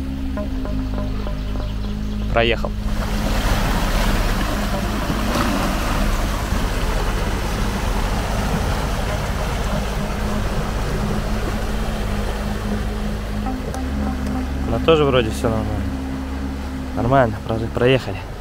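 A river rushes and churns steadily nearby.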